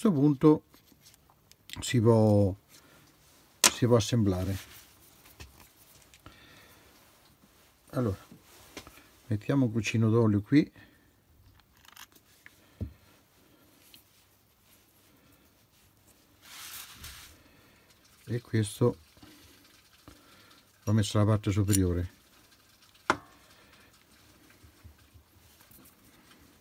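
Small steel parts click together in the hands.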